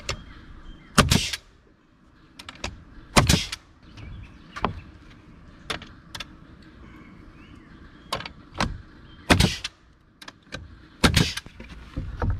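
A nail gun fires sharp bangs into wood, one shot at a time.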